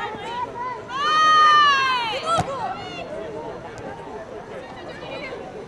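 Young players shout and call out to each other outdoors.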